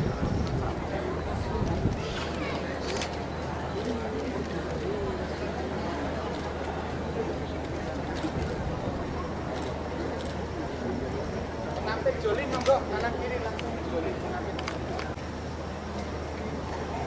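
A large crowd talks and murmurs nearby.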